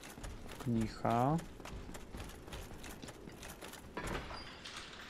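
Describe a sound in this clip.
Armored footsteps clank rapidly on stone.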